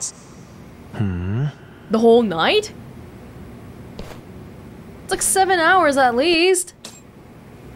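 A second man answers in a relaxed voice.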